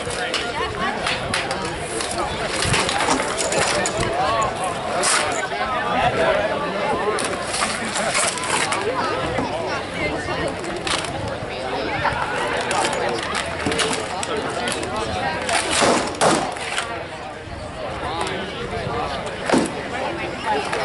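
Weapons clash and clatter in a mock fight.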